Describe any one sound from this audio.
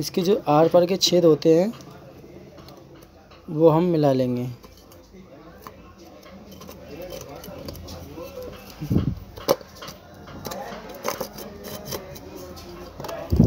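A metal motor casing is turned over in the hands with soft knocks and scrapes.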